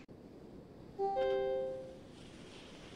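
A short electronic signal beeps.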